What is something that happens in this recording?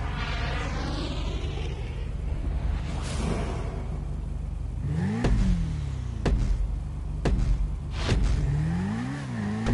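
A motorcycle engine idles and revs.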